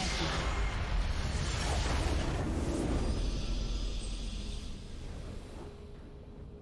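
A game's base crumbles with a loud rumbling blast.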